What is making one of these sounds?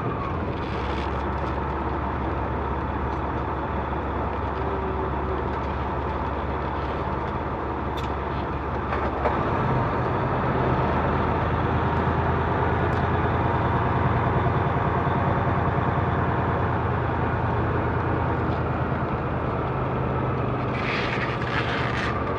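A truck's diesel engine rumbles steadily and shifts gear.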